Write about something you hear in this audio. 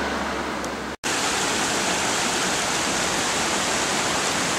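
A shallow stream rushes and splashes over rocks nearby.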